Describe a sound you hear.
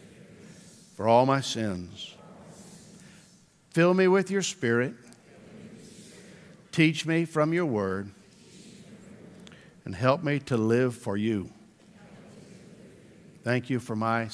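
A man speaks slowly and deliberately through a microphone, with long pauses.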